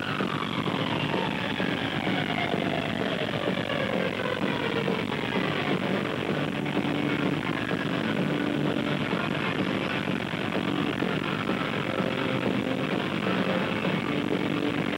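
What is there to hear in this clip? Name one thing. Loud live rock music blares through big speakers in a large echoing hall.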